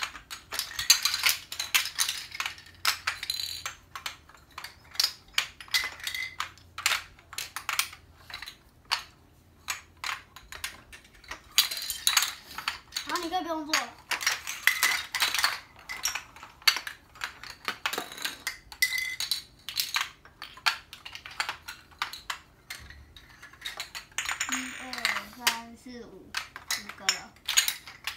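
Plastic magnetic building pieces click and clack together.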